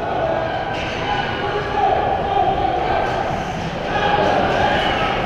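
Ice skates scrape across the ice in a large echoing hall.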